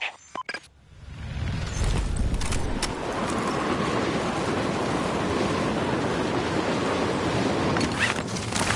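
Wind rushes loudly past during a fast freefall.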